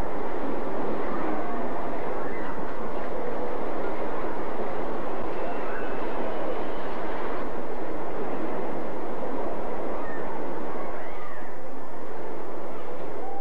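A roller coaster train rattles along a wooden track.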